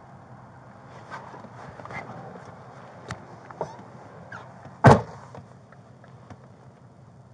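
Clothing rustles and shifts close by.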